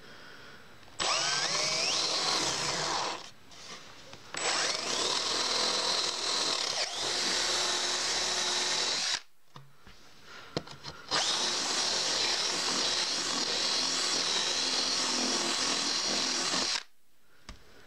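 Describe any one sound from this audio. A power drill whirs as it bores into wood.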